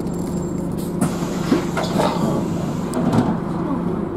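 A bus rattles and creaks over bumps.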